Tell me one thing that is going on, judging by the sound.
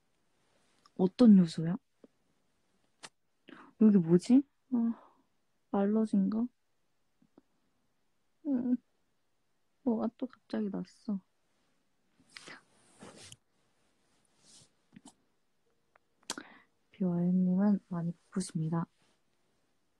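A young woman speaks softly and playfully, close to the microphone.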